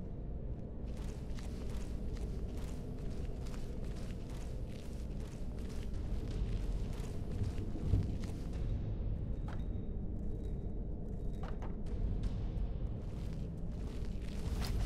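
Footsteps tread on a stone floor.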